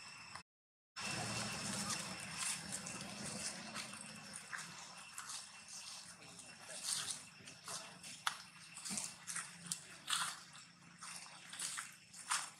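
Dry leaves rustle and crunch under a monkey's feet.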